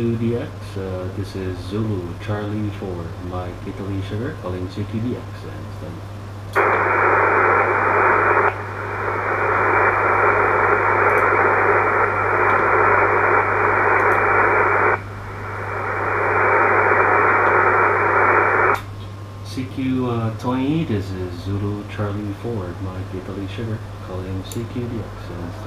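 A man speaks calmly and close by into a handheld microphone.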